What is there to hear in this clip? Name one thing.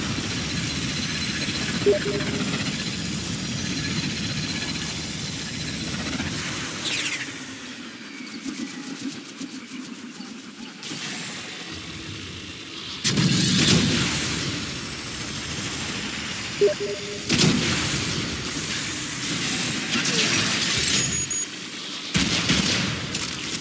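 A jet engine roars and whooshes at speed.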